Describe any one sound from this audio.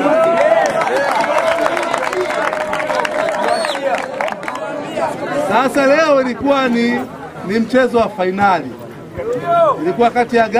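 A man speaks loudly and cheerfully.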